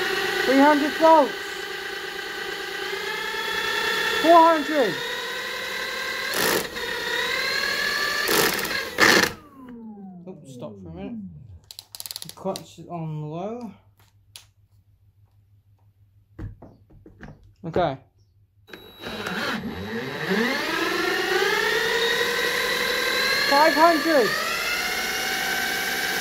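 A cordless drill whirs, spinning up in pitch and then winding down.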